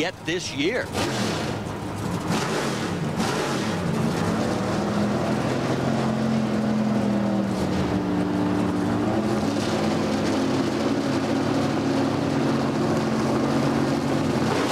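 Racing car engines rumble loudly and steadily at idle.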